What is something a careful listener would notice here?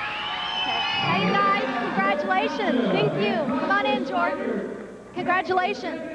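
A woman asks questions into a microphone.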